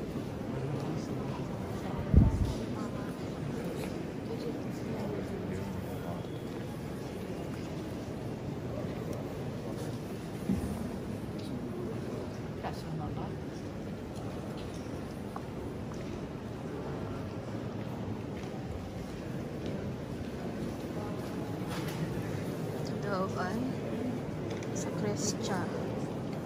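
A crowd of visitors murmurs softly in a large echoing hall.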